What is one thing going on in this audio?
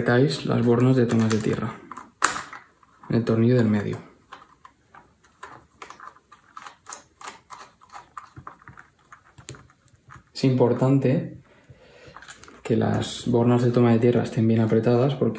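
Small plastic clicks and taps come from terminal blocks being snapped and worked with a screwdriver.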